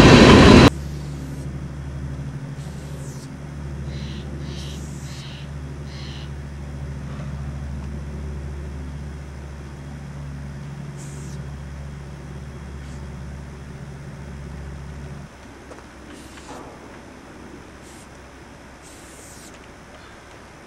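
A spray paint can hisses in short bursts.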